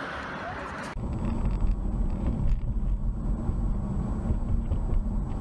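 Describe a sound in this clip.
A car drives along a road with a low rumble.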